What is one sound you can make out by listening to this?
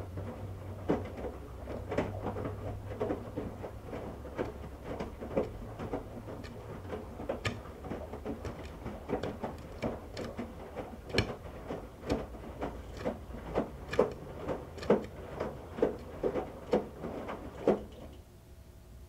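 Water sloshes and splashes inside a washing machine.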